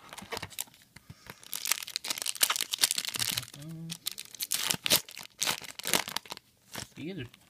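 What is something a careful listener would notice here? Foil card packs crinkle and rustle up close.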